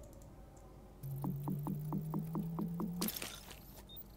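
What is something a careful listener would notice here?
A pulsing electronic tone plays as an item is crafted.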